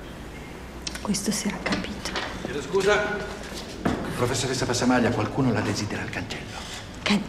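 A woman speaks in a tense voice close by.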